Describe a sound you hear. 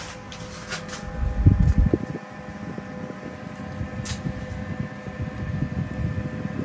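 Air blowing from a fan buffets the microphone with a rough rumble.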